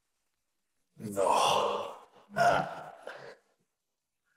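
A man speaks drowsily, close by.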